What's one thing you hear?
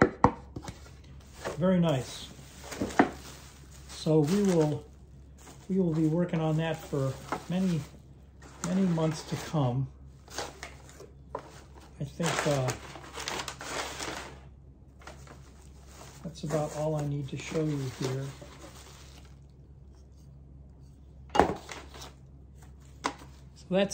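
Plastic bubble wrap rustles and crinkles as it is handled.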